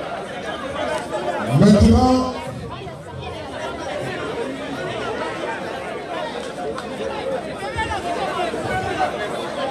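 A large crowd of men and women murmurs and chats outdoors.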